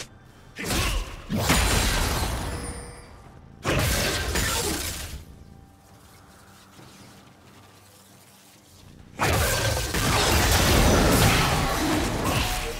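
Magic spell effects whoosh and crackle in loud bursts.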